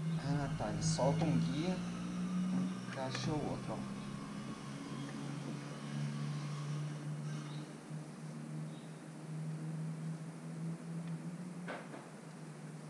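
Metal tools clink against a motorcycle engine.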